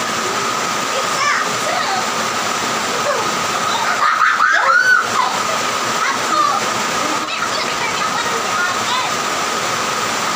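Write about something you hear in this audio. Young women laugh and talk nearby.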